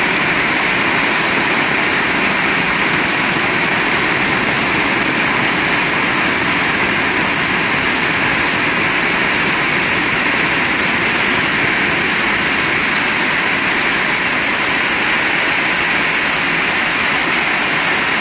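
Rainwater splashes and spatters from a roof edge onto wet ground.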